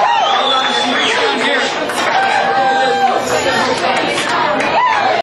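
A crowd of people talks and shouts loudly all around.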